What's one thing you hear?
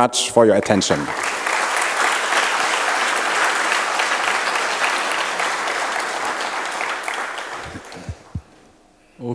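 An audience applauds.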